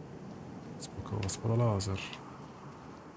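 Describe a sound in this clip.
A young man speaks briefly and closely into a microphone.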